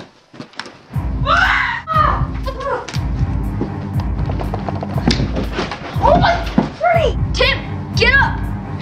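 Boys shout and laugh excitedly close by.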